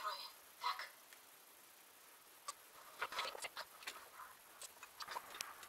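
Masking tape crinkles and tears as it is pulled.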